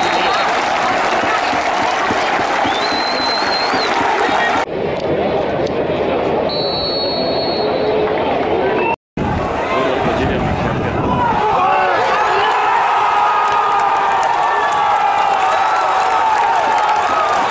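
A large stadium crowd cheers and chants loudly outdoors.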